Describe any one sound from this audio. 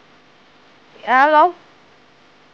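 A young woman speaks a short, sharp phrase close by.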